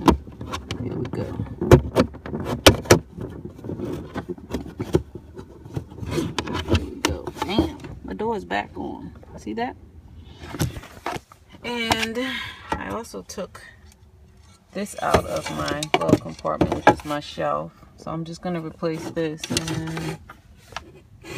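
Fingers knock and scrape against a hard plastic surface close by.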